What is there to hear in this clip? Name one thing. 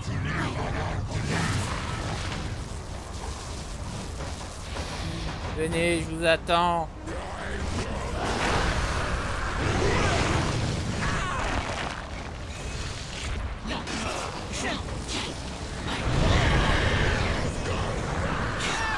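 Magical energy crackles and booms.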